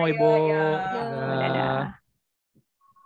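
A young woman speaks through an online call.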